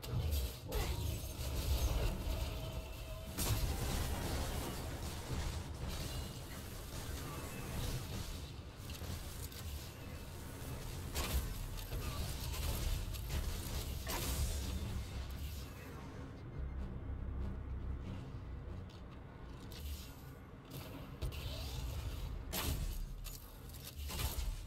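Low rumbling explosions thunder on and off.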